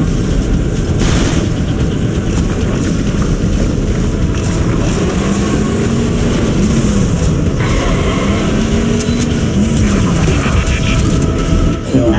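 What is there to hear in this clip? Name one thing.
A car engine roars as a vehicle drives over rough ground.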